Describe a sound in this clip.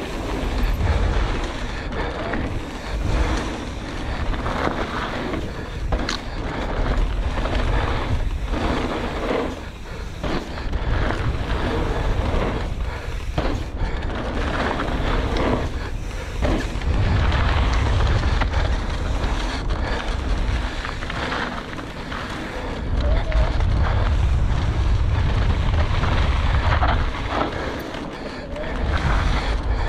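Knobby mountain bike tyres roll and crunch over a dirt trail.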